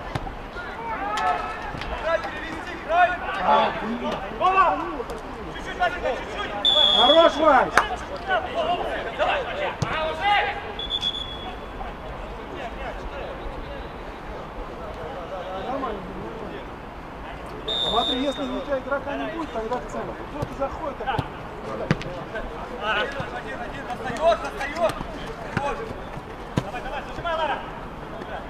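Men shout to each other across an open outdoor field.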